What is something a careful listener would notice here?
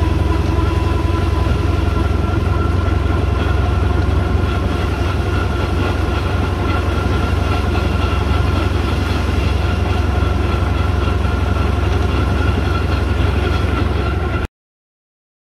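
A steam engine rumbles and chugs steadily.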